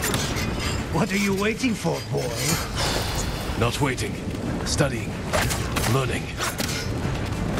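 A middle-aged man talks with animation over a microphone.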